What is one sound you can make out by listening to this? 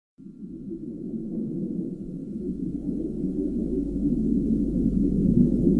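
Water rumbles and swirls in a low, muffled wash underwater.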